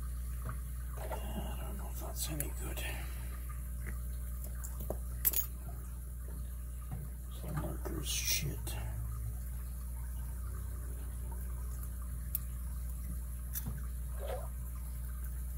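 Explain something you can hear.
Metal tools click and scrape against a small padlock.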